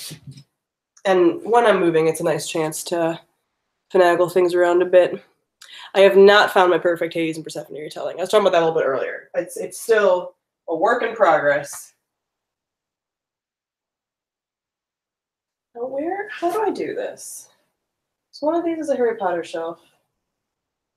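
A young woman speaks close to a microphone with animation.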